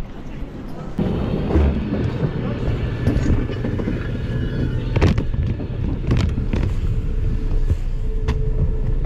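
Fabric rustles and rubs close by.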